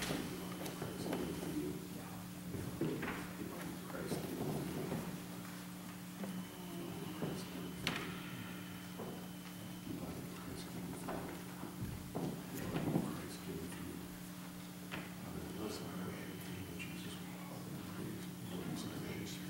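A young man reads out through a microphone.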